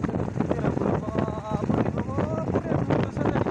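A young man speaks briefly over the wind.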